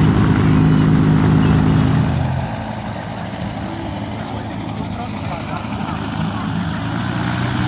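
A small aircraft engine drones overhead with a steady buzz.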